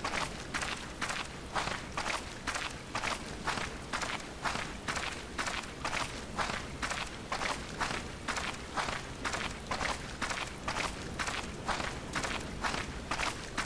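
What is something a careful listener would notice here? Footsteps crunch steadily and evenly on grass.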